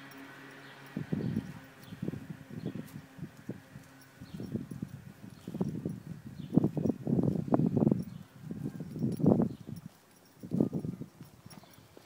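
A horse tears and munches grass up close.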